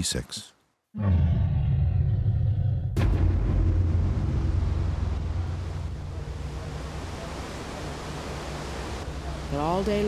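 A river rushes loudly over rocks.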